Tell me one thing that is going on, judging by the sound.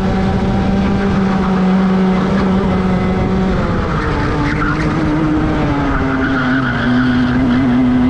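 Tyres rumble over the track surface.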